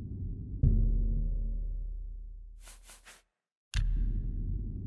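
A menu click sounds in a game.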